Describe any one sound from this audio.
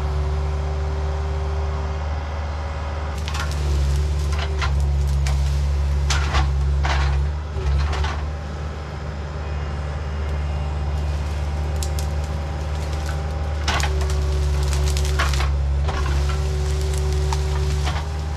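A skid steer engine rumbles steadily nearby.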